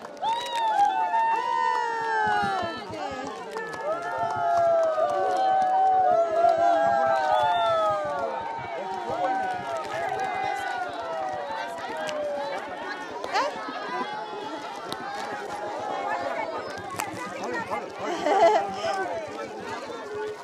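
A crowd of children shout and chatter excitedly close by, outdoors.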